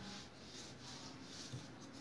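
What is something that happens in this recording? A rolling pin rolls over dough on a table.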